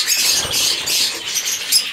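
Bird wings flutter in brief bursts.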